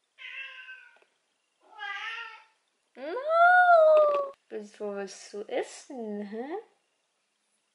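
A young woman talks cheerfully and close by.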